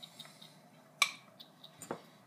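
A teenage boy bites and crunches food close by.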